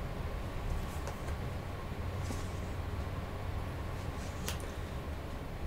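Playing cards rustle and tap in a woman's hands.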